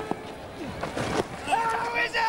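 A bat strikes a cricket ball with a sharp crack.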